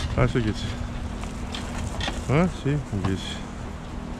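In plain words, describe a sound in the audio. A loaded cart scrapes and rattles over packed snow.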